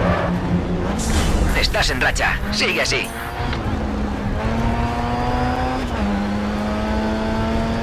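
A racing car engine roars and revs higher through the gears.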